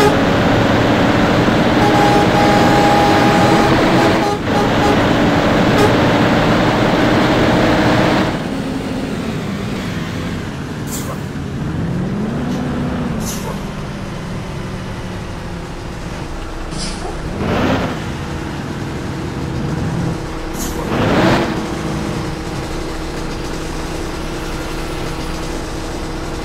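A car engine roars at high speed, then drops to a low hum as the car slows down.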